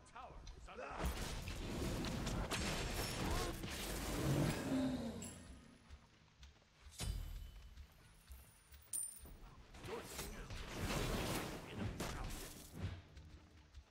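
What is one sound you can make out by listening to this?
Game combat effects blast and crackle in bursts.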